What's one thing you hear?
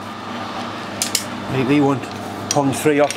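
Metal clinks as a part is removed from a chuck.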